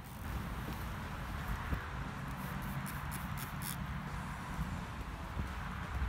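Glass cleaner sprays onto a car windshield.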